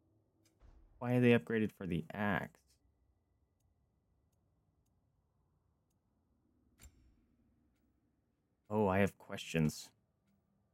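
A young man speaks in short bursts through a close microphone.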